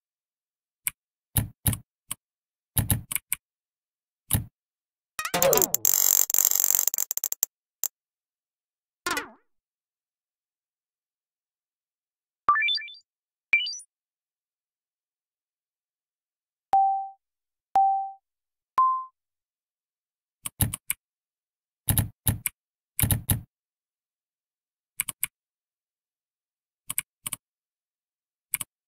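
A game plays short ticks as letters are typed.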